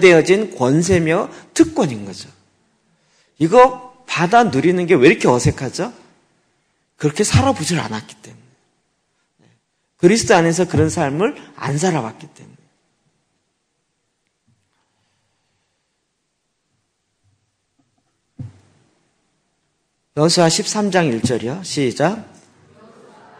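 A middle-aged man speaks with animation into a microphone, with pauses.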